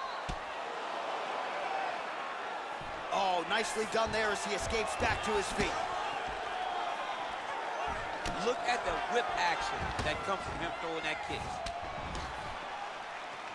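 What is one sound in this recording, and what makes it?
Punches thud against bodies.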